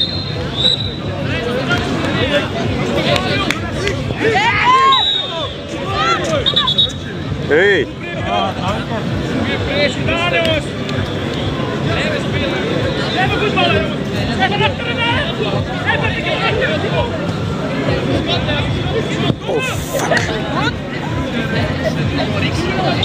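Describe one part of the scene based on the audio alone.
Young men shout and call out to each other across an open pitch outdoors.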